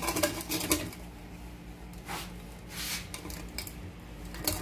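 A hand rubs and scrapes against a porcelain sink.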